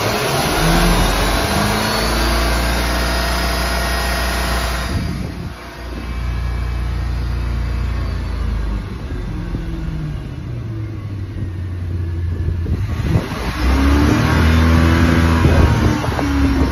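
Boat engines run with a loud, deep rumble that rises and falls in pitch.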